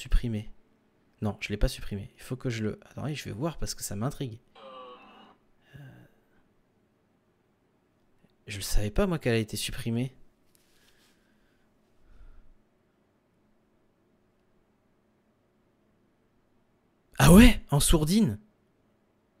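A young man speaks casually into a close microphone, in short bursts with pauses.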